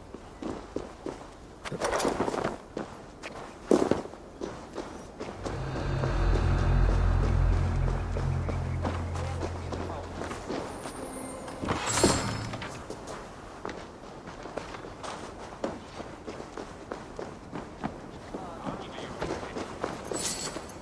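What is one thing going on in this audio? Footsteps crunch over dry leaves and dirt.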